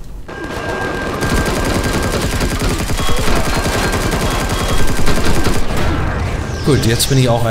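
A gun fires rapidly in bursts.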